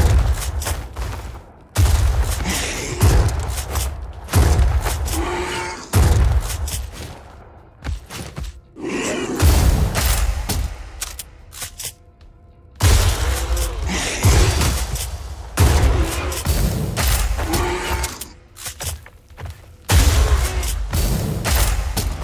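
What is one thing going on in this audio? A shotgun fires loud booming blasts with a short echo.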